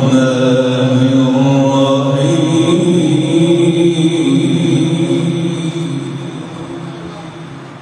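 A young man chants a long, drawn-out recitation through a microphone and loudspeakers, slowly fading at the end.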